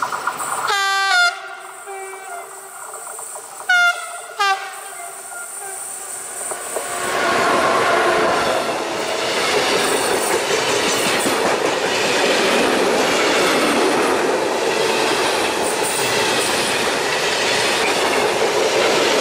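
A freight train approaches and rumbles past close by with a steady roar.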